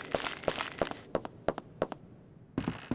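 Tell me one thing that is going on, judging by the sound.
Footsteps run on concrete.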